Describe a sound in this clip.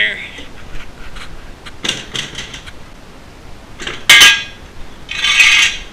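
Metal parts clank and rattle close by.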